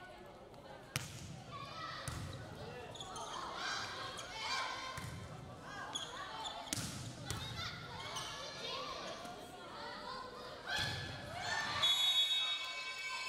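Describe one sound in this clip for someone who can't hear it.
Young women shout and call out to one another on the court.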